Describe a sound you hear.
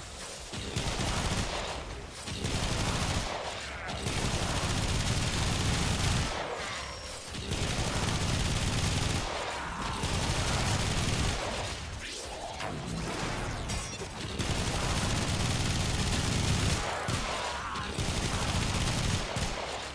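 Energy weapons fire and blast in rapid bursts.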